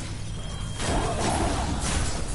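An explosion bursts with a sharp crackle.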